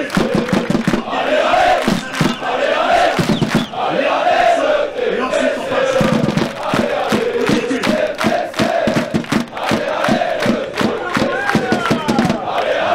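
Fans clap in a steady rhythm.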